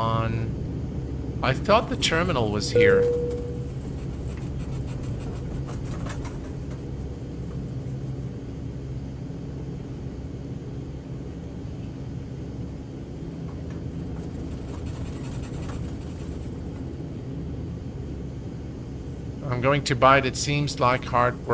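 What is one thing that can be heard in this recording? Turboprop engines hum steadily as an aircraft rolls along a runway.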